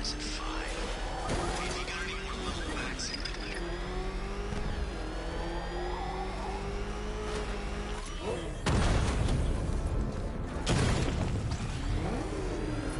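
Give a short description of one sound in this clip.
A powerful car engine drones steadily, its pitch rising and falling.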